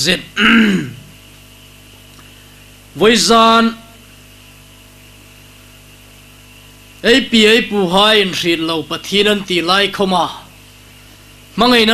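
A man speaks calmly into a microphone in short phrases with pauses, heard through a loudspeaker.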